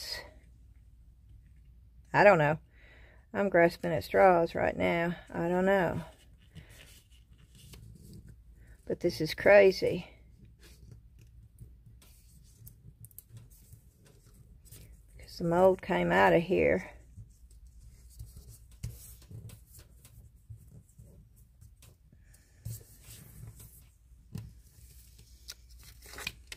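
Paper rustles and crinkles under fingers.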